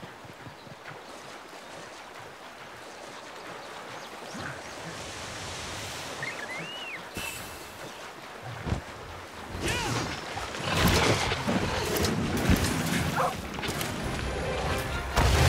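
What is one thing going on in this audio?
Rushing water splashes as a figure wades through a stream.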